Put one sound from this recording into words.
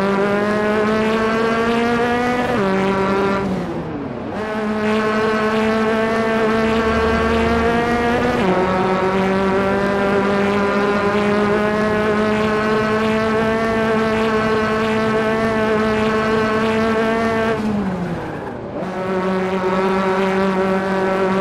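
A racing car engine roars at high revs, dropping in pitch as the gears shift and then climbing again.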